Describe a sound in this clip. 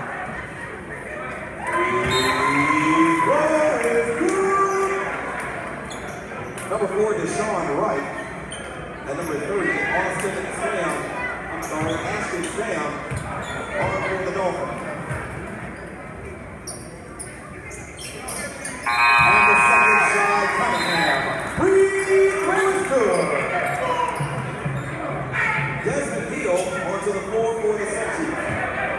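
A crowd of spectators chatters and cheers in a large echoing gym.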